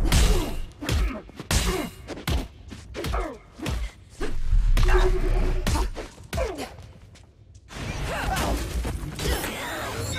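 Heavy punches and kicks land with sharp thuds, one after another.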